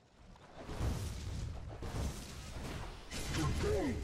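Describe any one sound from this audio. Blades clash and strike in a short fight.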